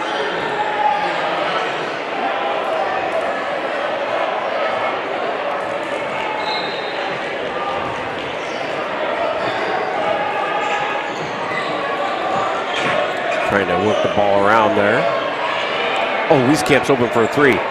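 A crowd of spectators chatters steadily in a large echoing gym.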